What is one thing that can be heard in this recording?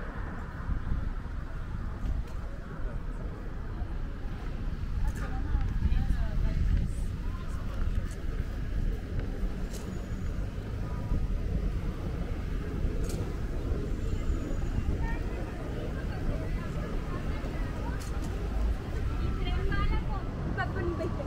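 Traffic rumbles steadily along a city street outdoors.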